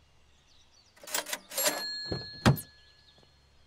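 A car door opens and shuts.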